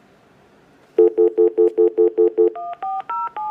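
A telephone beeps in a rapid, even series.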